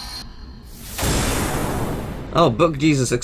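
A bright blast bursts with a rushing whoosh.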